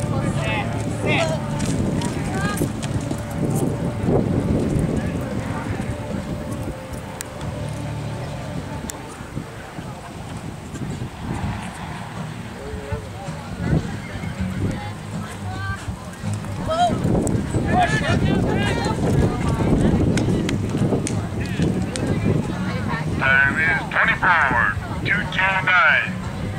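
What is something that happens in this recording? A horse gallops, hooves thudding on soft dirt.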